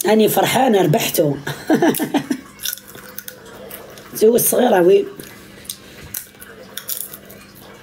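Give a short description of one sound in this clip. Seed shells crack softly between teeth.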